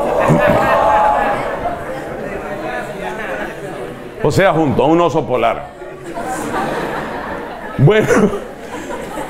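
A middle-aged man speaks with animation through a microphone and loudspeakers.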